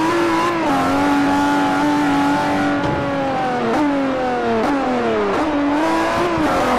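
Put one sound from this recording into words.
A sports car engine roars loudly, its pitch dropping with each gear shift and as it slows.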